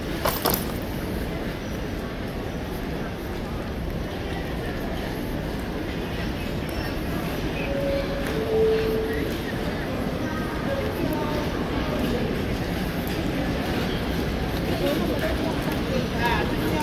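Luggage trolley wheels roll over a hard floor.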